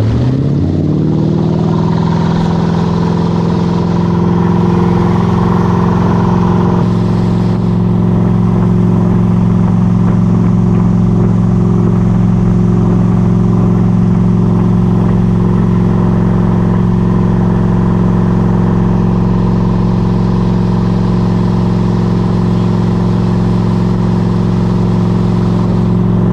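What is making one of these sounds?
Water churns and splashes loudly in a boat's wake.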